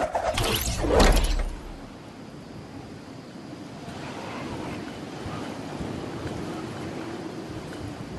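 Wind rushes steadily past during a glide through the air.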